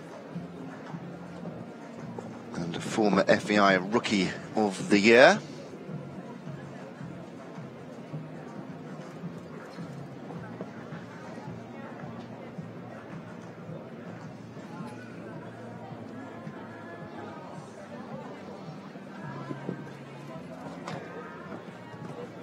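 A horse's hooves thud on soft sand.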